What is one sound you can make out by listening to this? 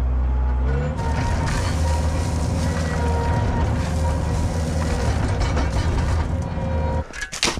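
Dirt pours from a loader bucket with a rushing hiss.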